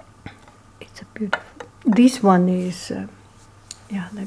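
A glass clinks softly as it is set down on a ceramic plate.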